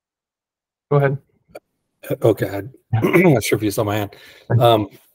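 Another man speaks with animation over an online call.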